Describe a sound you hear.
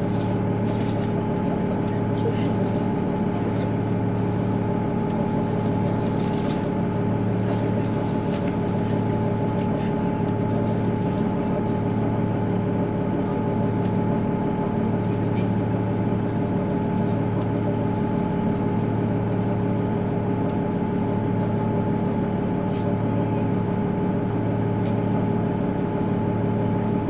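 A train's diesel engine idles with a steady low hum.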